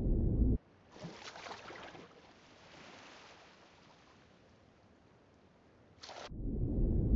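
Water splashes softly as a swimmer paddles at the surface.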